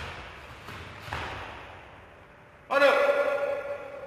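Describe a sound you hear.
Bare feet thud on a mat.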